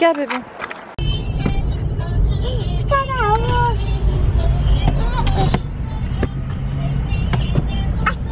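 A car engine hums steadily from inside a car.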